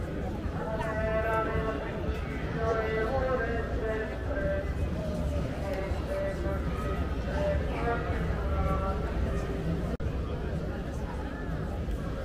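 A crowd of people murmurs and chats outdoors.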